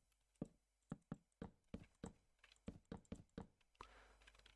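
Wooden blocks knock softly as they are placed one after another.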